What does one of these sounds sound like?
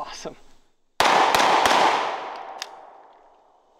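A handgun fires several quick shots outdoors, each echoing away.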